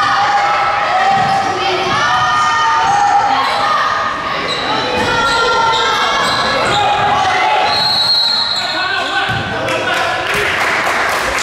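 A crowd of children and adults chatters and calls out.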